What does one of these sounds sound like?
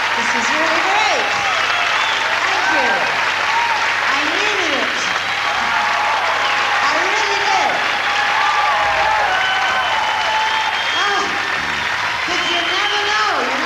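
A large crowd cheers and applauds loudly in a big echoing hall.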